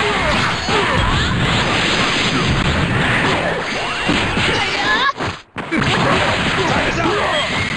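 Punches and blows land with sharp sound effects in a fighting video game.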